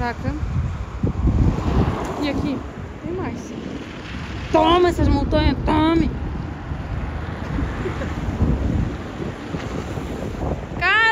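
A car passes close by on a road.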